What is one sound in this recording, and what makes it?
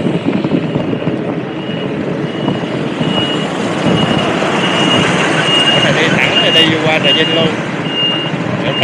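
Wind rumbles steadily against the microphone of a moving vehicle.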